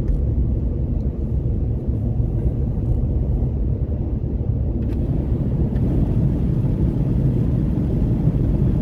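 Road noise rumbles inside a car cruising at highway speed on asphalt.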